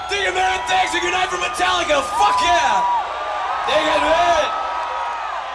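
A man shouts loudly into a microphone over loudspeakers.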